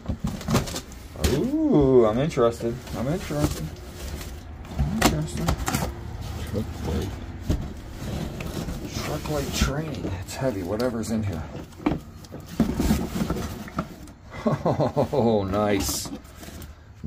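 Cardboard rustles and scrapes as hands rummage through a box.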